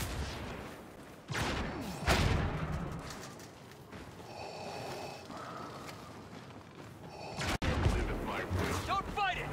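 Heavy footsteps crunch on snow.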